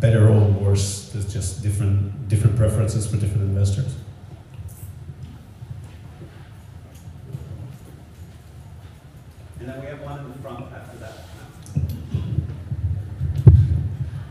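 A man speaks with animation into a microphone over loudspeakers in an echoing hall.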